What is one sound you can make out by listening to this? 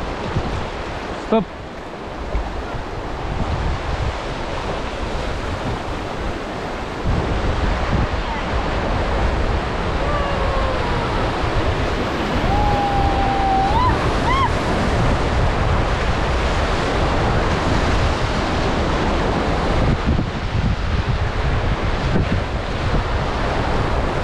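A river rushes and splashes loudly around a raft.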